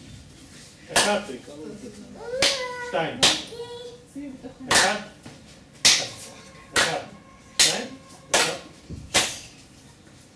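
A man claps his hands sharply.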